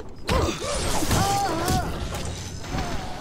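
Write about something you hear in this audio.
Electricity crackles and buzzes loudly.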